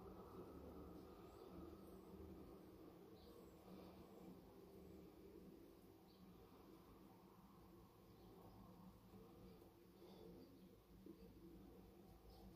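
A razor scrapes softly across stubble, close by.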